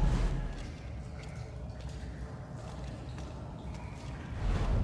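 Footsteps fall slowly on a stone floor.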